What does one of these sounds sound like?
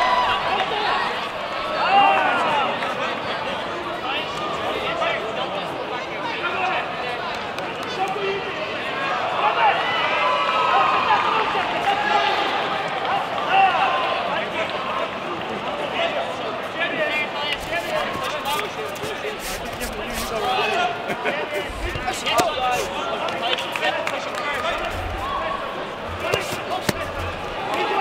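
A large crowd chatters and shouts in an echoing hall.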